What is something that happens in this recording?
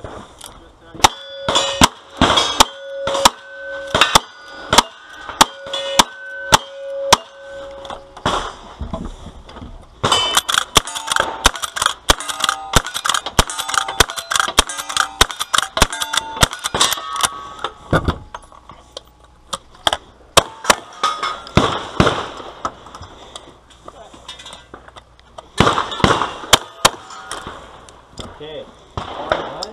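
Gunshots crack in quick succession outdoors.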